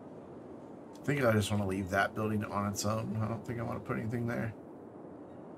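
A man talks casually and close into a microphone.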